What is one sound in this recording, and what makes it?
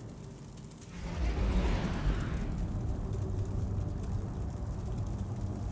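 A spacecraft engine roars with a deep, steady rumble.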